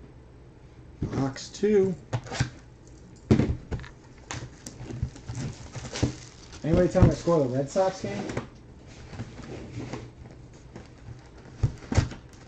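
Cardboard boxes knock and slide against each other.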